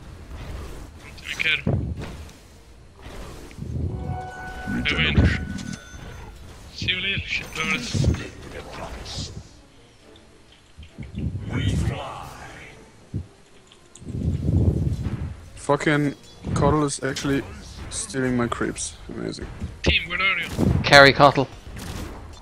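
Fantasy spell effects and weapon clashes ring out in a fight.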